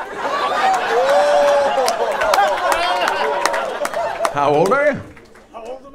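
An audience laughs loudly together.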